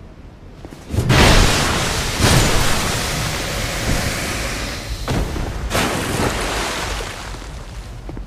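A fireball explodes with a loud roaring burst.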